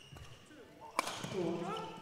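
A racket hits a shuttlecock sharply.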